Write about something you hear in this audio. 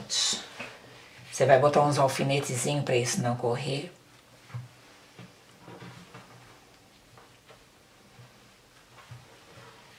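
Fabric rustles as hands smooth and fold it.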